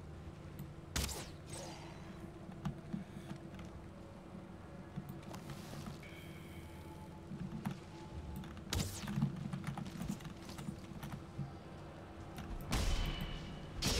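A weapon strikes with short, sharp thuds.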